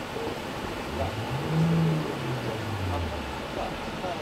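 A car engine revs up briefly and then settles back down.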